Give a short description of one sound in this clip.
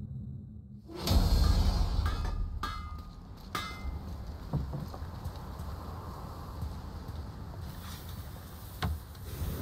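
Wind blows steadily outdoors across rocky ground.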